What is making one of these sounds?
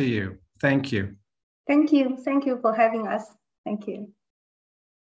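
A man speaks through an online call.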